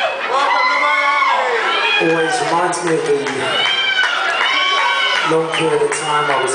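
A man sings loudly into a microphone, heard through loudspeakers in a live hall.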